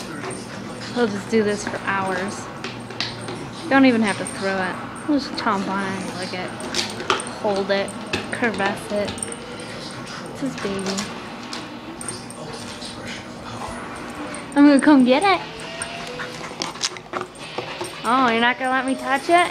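A dog whines and yelps in high, rising and falling tones.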